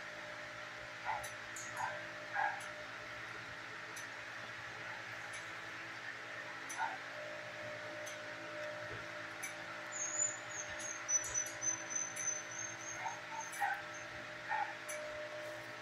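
A dog whines softly now and then.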